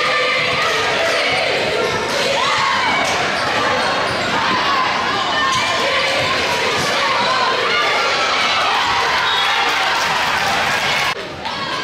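A crowd cheers and shouts loudly in an echoing gym.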